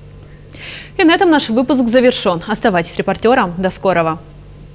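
A young woman reads out calmly and clearly into a close microphone.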